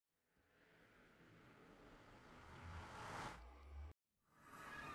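A deep whooshing hum swells louder and louder, then cuts off.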